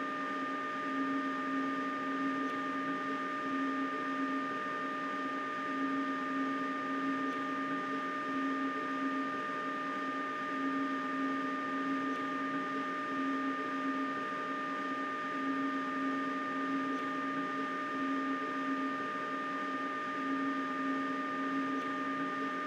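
A high steady whine rings over the train's hum.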